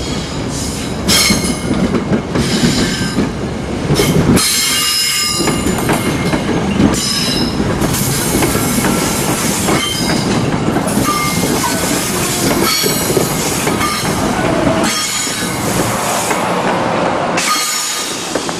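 A passenger train approaches and rumbles past close by.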